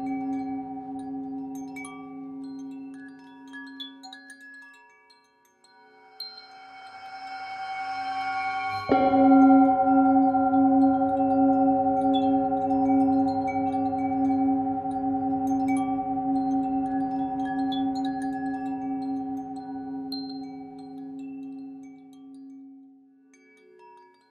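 A singing bowl rings with a deep, humming tone that swells, is struck sharply, and then slowly fades.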